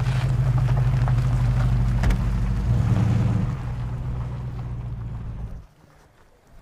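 A car engine idles with a low rumble, then cuts off.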